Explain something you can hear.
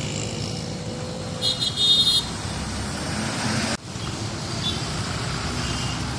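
Road traffic rumbles steadily outdoors.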